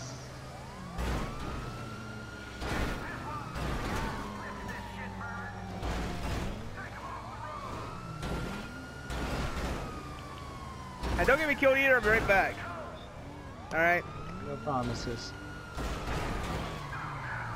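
Gunshots crack sharply, one after another.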